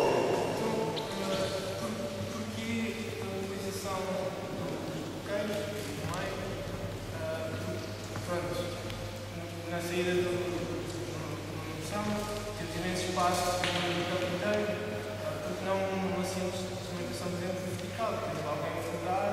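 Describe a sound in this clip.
A man speaks loudly and steadily to a group in a large echoing hall.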